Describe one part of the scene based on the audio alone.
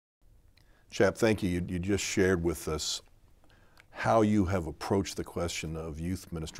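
An older man speaks calmly and with animation through a microphone, close by.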